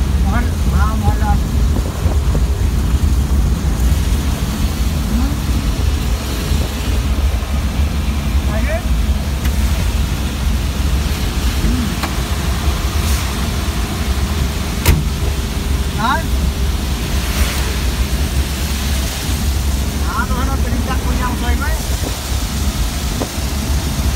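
A van's engine hums while driving.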